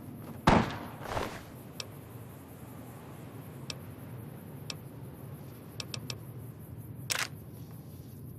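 Short interface clicks sound as items are picked from a menu.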